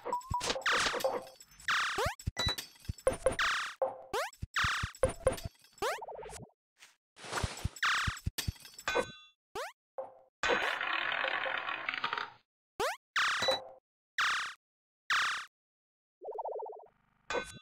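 Short electronic game sounds chime and whoosh in quick bursts.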